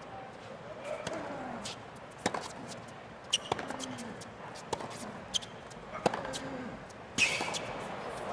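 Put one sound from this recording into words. Tennis balls are struck hard by rackets in a rally.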